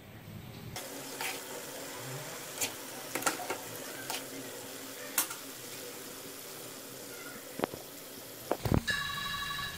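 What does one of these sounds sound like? Hot oil sizzles and bubbles steadily in a pan.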